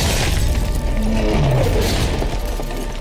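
A fiery explosion booms.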